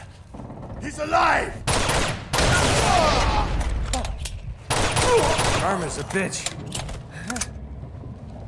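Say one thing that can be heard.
Pistol shots ring out in quick bursts.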